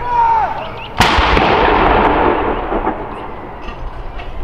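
A cannon fires a single loud blast that booms and echoes away outdoors.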